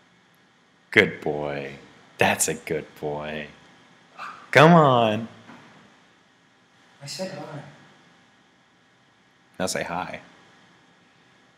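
A young man talks and laughs loudly.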